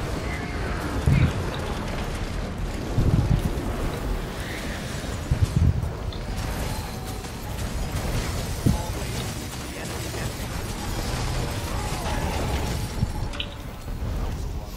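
Fiery magic blasts boom and crackle in a battle.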